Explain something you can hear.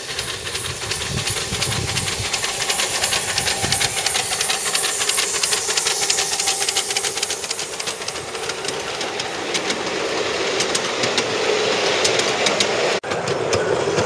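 A small steam locomotive chuffs with a quick, steady beat.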